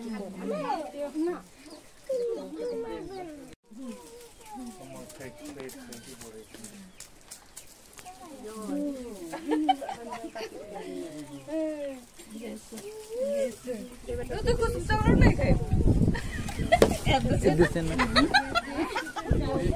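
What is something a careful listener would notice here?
Women and men talk and chatter nearby with animation.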